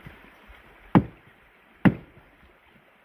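An axe chops sharply into a log twice.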